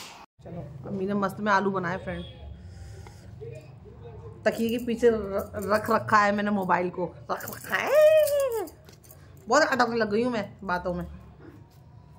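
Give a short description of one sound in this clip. A woman talks with animation close by.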